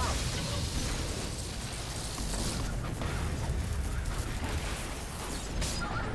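Electric crackling buzzes steadily.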